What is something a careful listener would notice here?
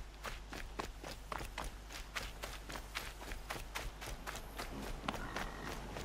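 Footsteps patter quickly along a dirt path.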